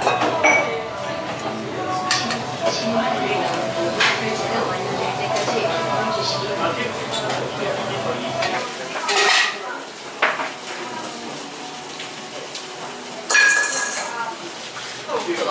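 Batter sizzles softly on a hot griddle.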